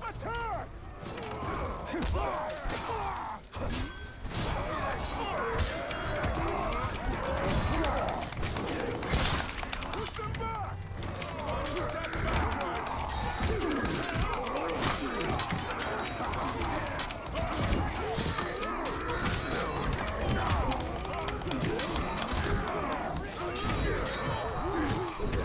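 Creatures snarl and roar loudly during the fight.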